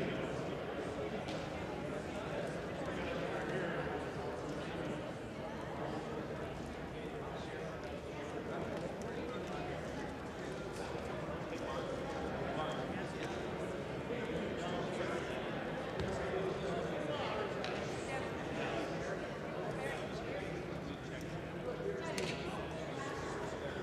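A crowd of men and women chatter at once in a large echoing hall.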